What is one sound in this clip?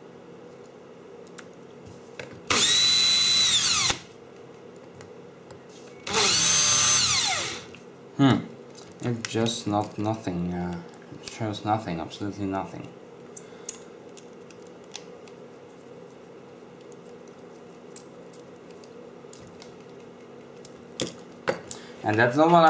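Small wires and metal parts tap and click softly as they are handled.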